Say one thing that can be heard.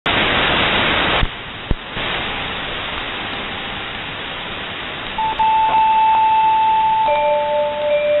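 Shortwave radio static hisses and crackles through a receiver.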